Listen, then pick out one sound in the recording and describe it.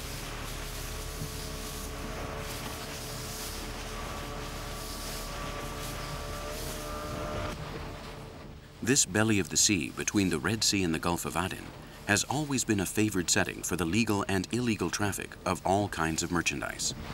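Waves splash against a moving boat.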